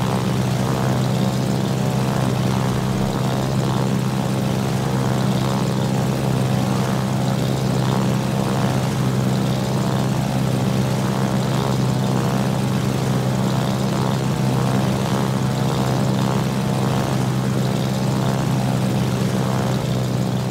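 Propeller plane engines drone steadily.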